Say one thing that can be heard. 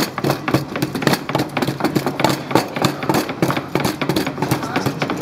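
Knives chop with quick knocks.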